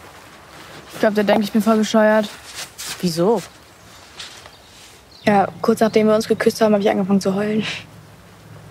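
A teenage girl speaks softly close by.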